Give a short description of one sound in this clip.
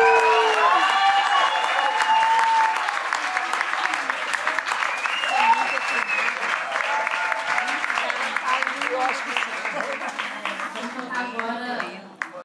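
A woman sings into a microphone on stage.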